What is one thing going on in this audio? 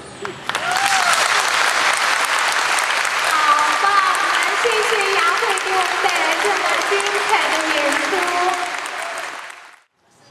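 A young woman laughs loudly nearby.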